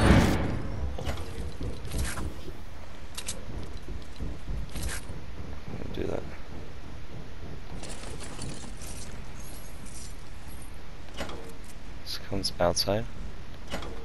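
A metal door swings open and shut in a game.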